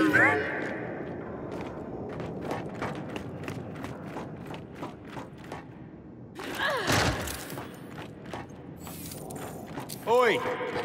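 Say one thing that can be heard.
Heavy boots thud on metal floors.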